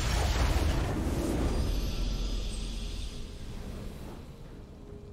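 A triumphant victory fanfare plays and fades.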